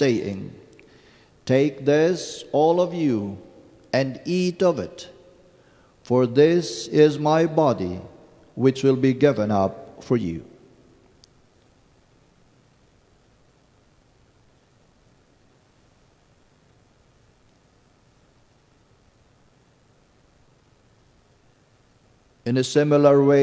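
An elderly man chants slowly into a microphone.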